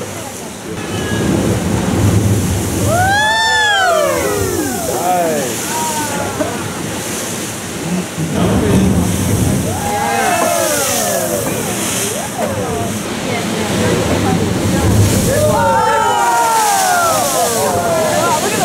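Spray bursts up from a rock channel with a rushing roar.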